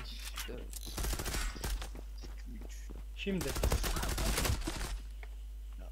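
Gunfire rattles in bursts.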